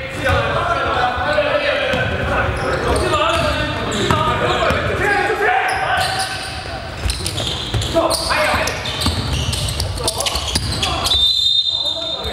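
Young men call out to each other across an echoing court.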